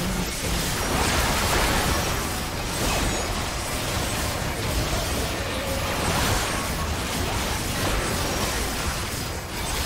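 Video game spell blasts and combat effects crackle and boom continuously.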